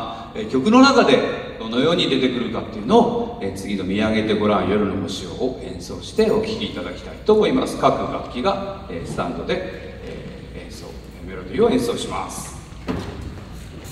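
A man speaks calmly into a microphone, heard over loudspeakers in a large echoing hall.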